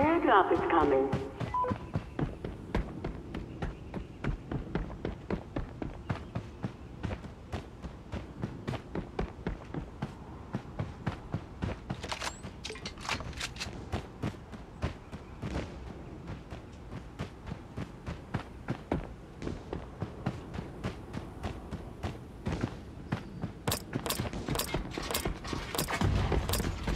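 Quick footsteps thud steadily on the ground in a game.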